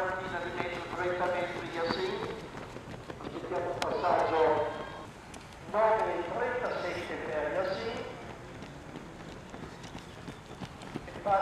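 Running footsteps patter on a track.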